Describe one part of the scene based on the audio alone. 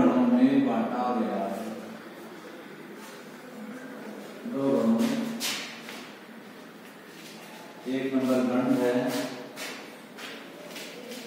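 A man speaks calmly in an echoing room, pausing between phrases.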